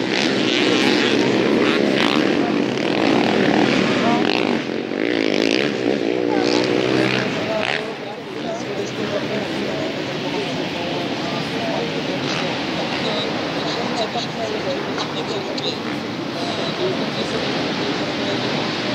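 Motorcycle engines rev and roar nearby, rising and falling in pitch.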